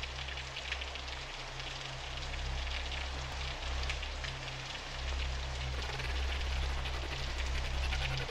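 A pickaxe chips and breaks stone blocks in quick repeated crunches.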